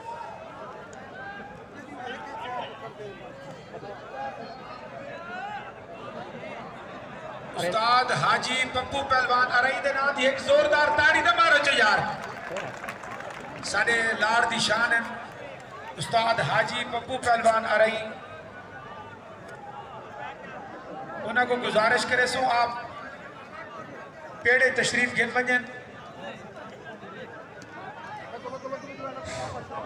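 A large crowd murmurs outdoors.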